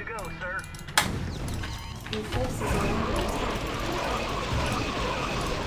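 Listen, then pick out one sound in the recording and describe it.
Game gunfire rattles rapidly.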